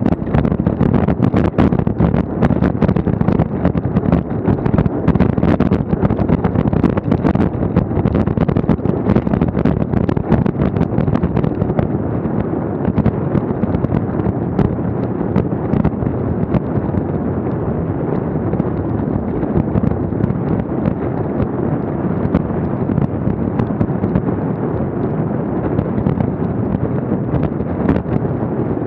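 Wind rushes and buffets loudly against a bicycle as it rides along.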